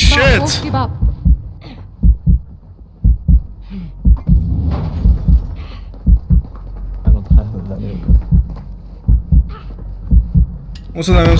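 A downed soldier crawls across the floor with dull, regular thuds.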